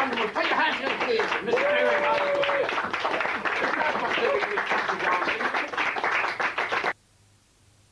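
An acoustic guitar is strummed briskly.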